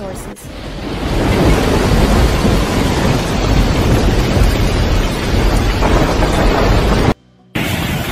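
Floodwater rushes and churns loudly.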